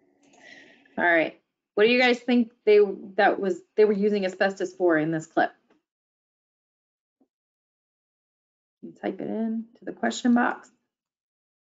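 A woman speaks calmly into a microphone, heard as if over an online call.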